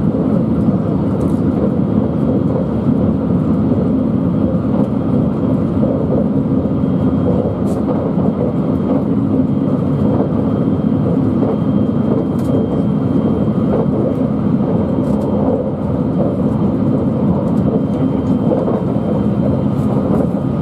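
Train wheels click over rail joints now and then.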